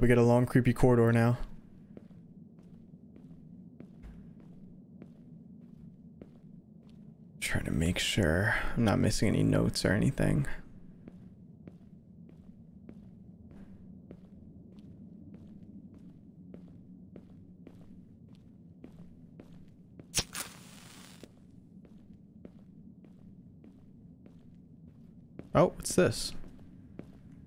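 Footsteps fall on a stone floor.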